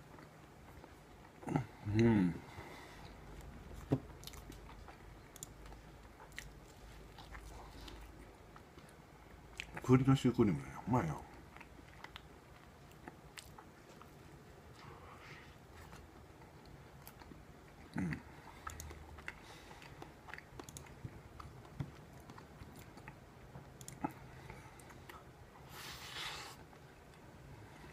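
A man chews soft food with wet, crackly mouth sounds close to a microphone.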